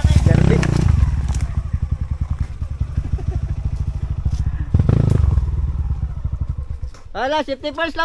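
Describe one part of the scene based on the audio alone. A dirt bike engine putters unevenly and revs up close by.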